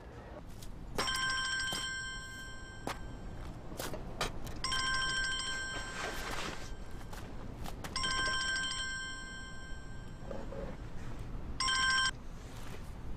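A mobile phone rings with a repeating electronic tone.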